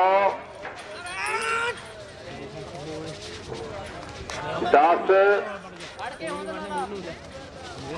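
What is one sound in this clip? Bulls' hooves thud on soft dirt as they run.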